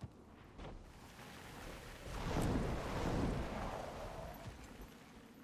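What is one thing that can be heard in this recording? Wings beat and air rushes past in a loud whoosh.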